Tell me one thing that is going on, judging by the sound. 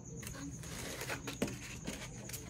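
Foam packing squeaks against cardboard.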